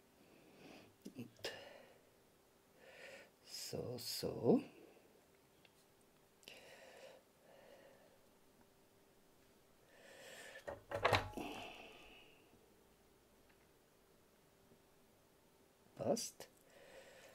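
Small metal parts click and tap together close by.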